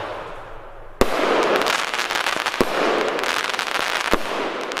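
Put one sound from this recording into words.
Fireworks crackle and pop rapidly.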